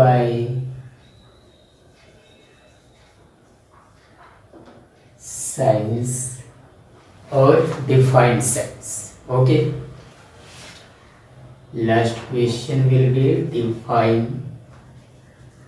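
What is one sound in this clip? A young man speaks clearly and calmly nearby, in short bursts.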